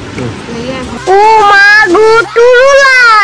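A boy sings loudly through a tinny recording.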